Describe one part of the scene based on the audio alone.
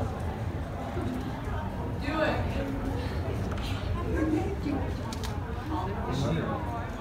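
A young woman speaks to a crowd.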